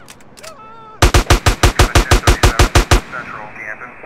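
A gun fires in a rapid burst of shots.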